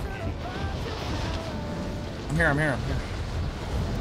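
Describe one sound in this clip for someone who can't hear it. Wind rushes loudly.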